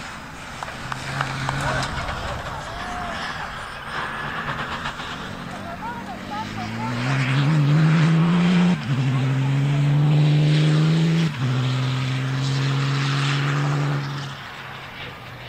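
A rally car's engine revs hard, shifting up through the gears.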